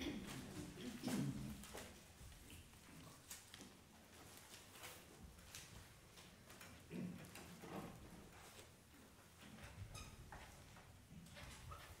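A piano plays softly in a hall.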